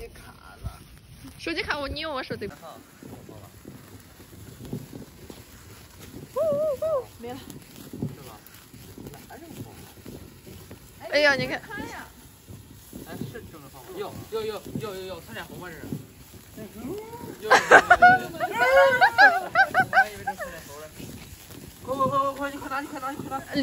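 Sparklers fizz and crackle.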